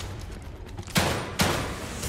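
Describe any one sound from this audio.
A pistol fires two loud shots.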